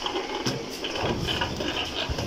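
A metal wheelbarrow rattles as it rolls.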